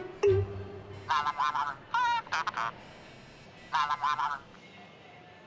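A young man's voice comes faintly through a phone.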